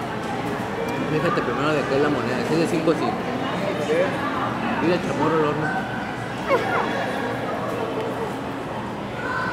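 A young boy talks close to a phone microphone.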